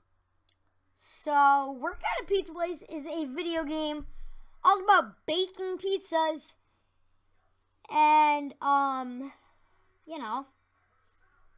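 A boy talks with animation close to a microphone.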